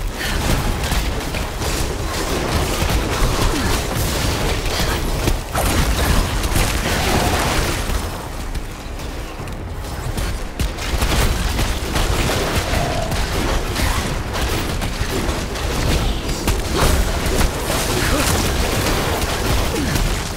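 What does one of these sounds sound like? Game spells crackle and whoosh during a battle.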